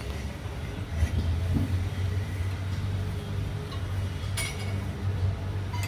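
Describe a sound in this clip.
A metal wrench clinks against a machine part.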